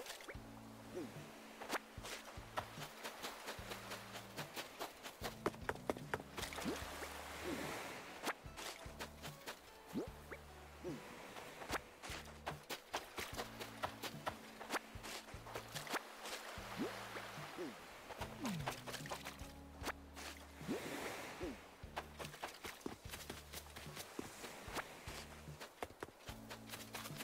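Gentle waves wash softly onto a shore.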